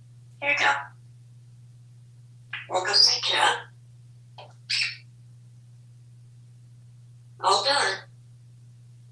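A parrot squawks and chatters in bursts, close by.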